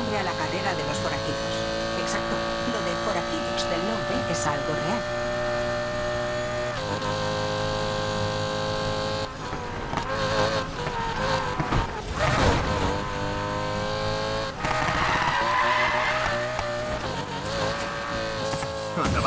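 A high-revving sports car engine roars steadily, shifting gears as it speeds along.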